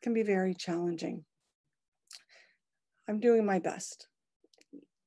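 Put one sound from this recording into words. A middle-aged woman speaks calmly over an online call, in short bursts.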